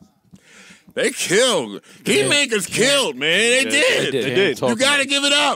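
A man sings loudly and with feeling into a nearby microphone.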